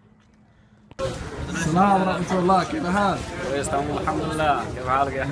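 A man speaks cheerfully up close.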